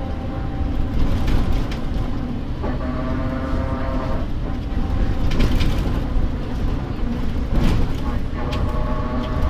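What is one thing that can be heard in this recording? A bus rattles and knocks over bumps in the road.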